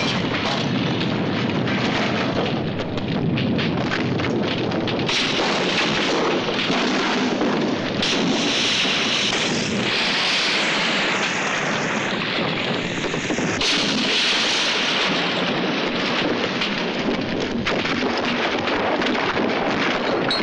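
Fire roars loudly.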